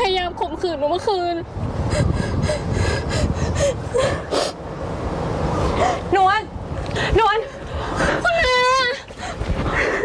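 A young woman wails and sobs loudly close by.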